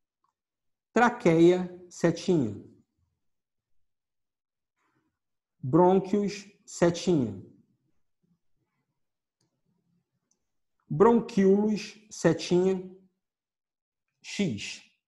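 A man speaks calmly in short phrases with pauses, close to the microphone.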